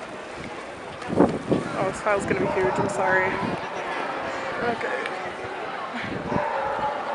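A crowd of young people chatters outdoors.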